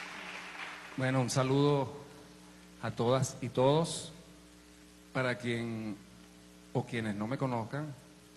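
A man talks through a microphone in short bursts.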